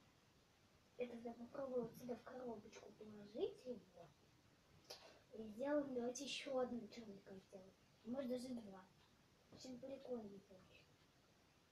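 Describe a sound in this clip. A young girl talks calmly close by.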